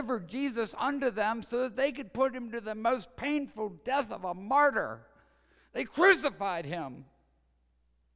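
A man speaks dramatically into a microphone in a large hall.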